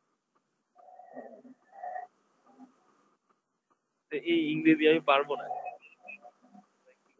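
A man speaks over an online call.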